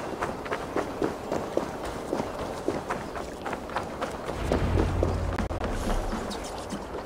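Footsteps thud quickly on stone and wooden boards.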